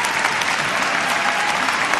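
A large crowd cheers and applauds in an echoing arena.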